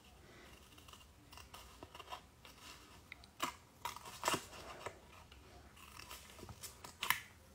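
A paper sheet rustles and crinkles in a hand.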